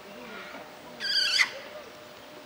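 A monkey gives a short, shrill call nearby.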